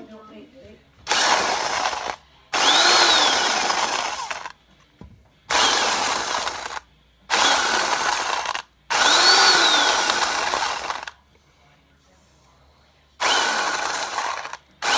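An electric grinder whirs loudly in short bursts.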